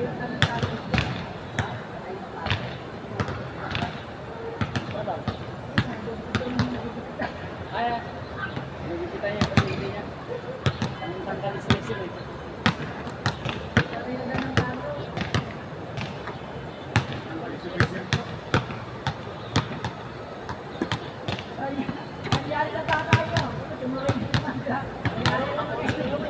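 Basketballs bounce on an outdoor court with sharp thuds.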